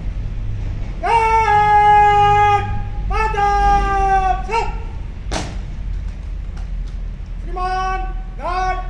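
A man shouts long, drawn-out parade commands outdoors.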